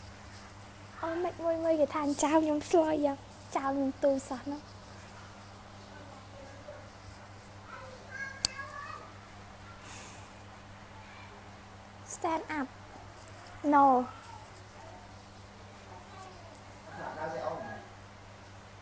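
A young woman speaks softly and close to a microphone, in short bursts.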